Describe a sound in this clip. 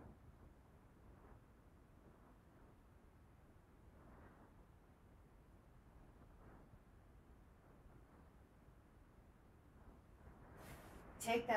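A woman breathes out steadily during exercise.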